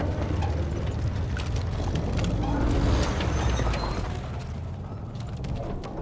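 A vehicle engine rumbles nearby.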